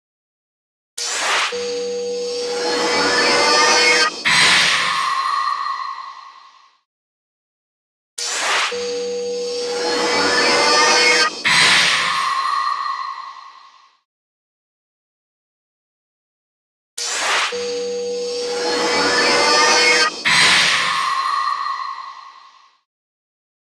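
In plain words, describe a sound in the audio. Electronic whooshing game effects swell and burst with a shimmering ring, three times over.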